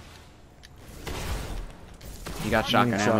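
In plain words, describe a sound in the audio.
Gunfire bursts loudly.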